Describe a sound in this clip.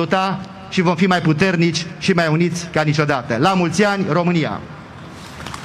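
A middle-aged man speaks solemnly into a microphone over loudspeakers outdoors.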